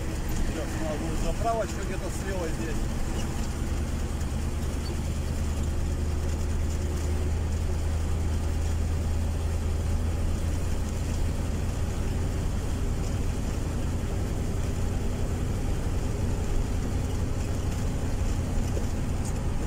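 Tyres roll on asphalt with a steady rush.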